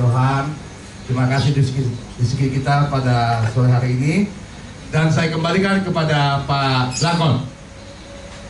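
A man speaks with animation into a microphone through a loudspeaker.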